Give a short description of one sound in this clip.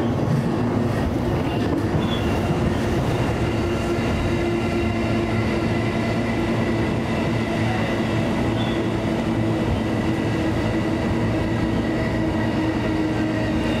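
A train's roar echoes loudly inside a tunnel.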